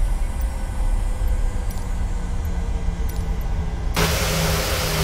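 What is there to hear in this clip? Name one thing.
Jet engines hum steadily at idle, muffled as if from inside a cockpit.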